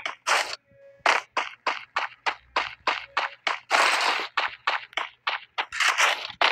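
Footsteps run quickly over the ground.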